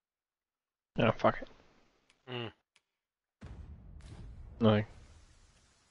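Game menu sounds chime and swoosh as a menu closes.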